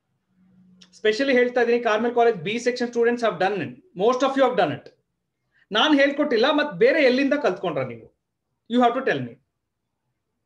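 A man speaks calmly and clearly, close to the microphone.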